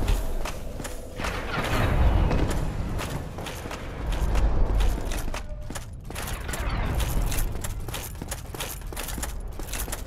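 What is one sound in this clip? Armoured footsteps clank rapidly on stone.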